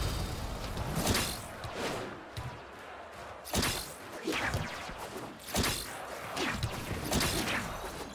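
Sharp whooshing attack sounds sweep past again and again.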